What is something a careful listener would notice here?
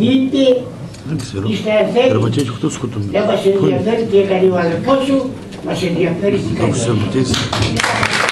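A woman speaks calmly through a microphone and loudspeakers in an echoing hall.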